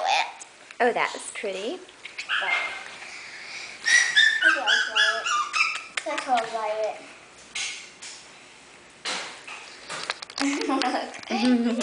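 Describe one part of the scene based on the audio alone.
A young child talks and giggles nearby.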